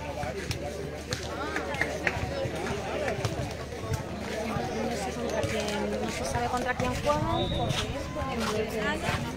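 Many young people chatter and call out at a distance outdoors.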